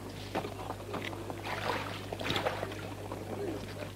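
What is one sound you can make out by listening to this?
Water splashes as a hand dips into it.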